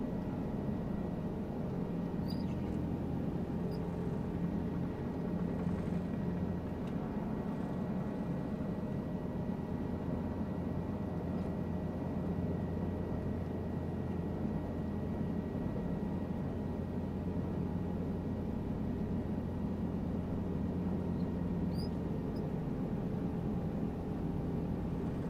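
A helicopter engine and rotor drone steadily and loudly.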